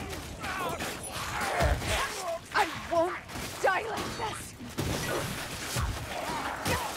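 Blades slash and strike in a close fight.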